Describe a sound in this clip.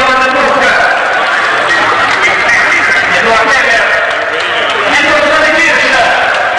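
A crowd cheers and shouts loudly nearby.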